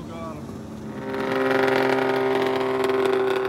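A snowmobile engine roars loudly close by, idling and revving.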